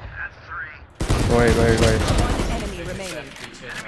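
Gunshots fire in rapid bursts in a video game.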